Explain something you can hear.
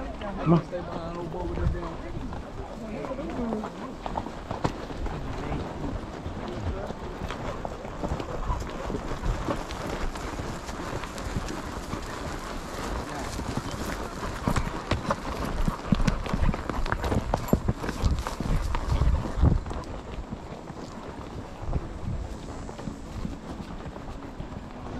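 Tack and gear creak and rattle with the horse's steps.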